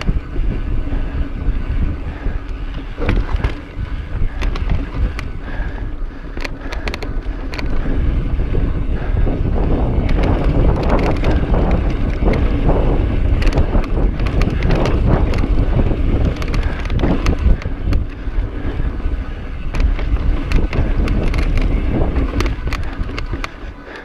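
Bicycle tyres crunch and roll over dirt and rock.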